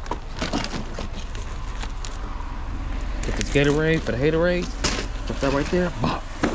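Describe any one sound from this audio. A plastic bag rustles as items are taken out.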